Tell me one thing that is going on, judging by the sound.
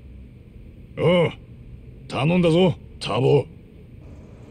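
A man answers in a low, gruff voice.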